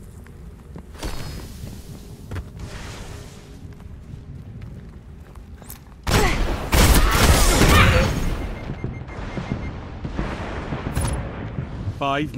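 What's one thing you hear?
Gunshots fire in loud bursts.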